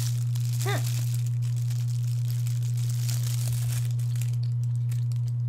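A plastic wrapper crinkles close by.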